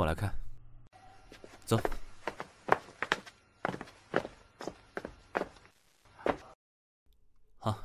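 Footsteps tap on paving.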